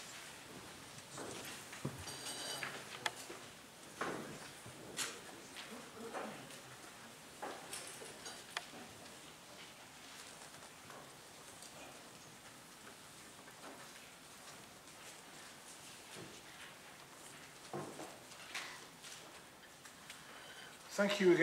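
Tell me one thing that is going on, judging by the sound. An elderly man speaks calmly into a microphone, heard through a loudspeaker in a large hall.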